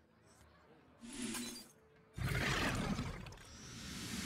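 A game creature is summoned with a loud magical burst.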